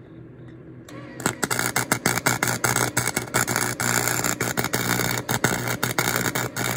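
An arc welder crackles and sizzles loudly.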